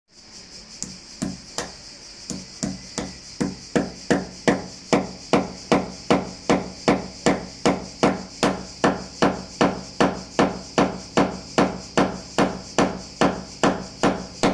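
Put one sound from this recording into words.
A hammer taps steadily on metal, in quick even strokes.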